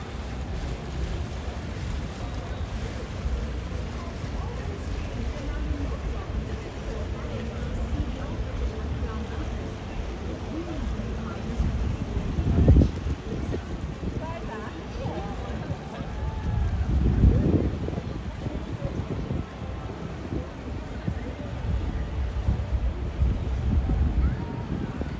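A crowd of passengers chatters faintly nearby.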